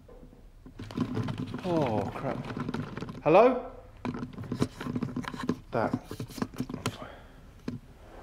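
A man speaks quietly close by, in a hushed voice.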